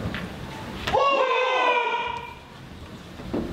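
A man lets out a loud, drawn-out shout in an echoing hall.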